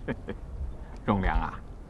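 A man speaks sternly up close.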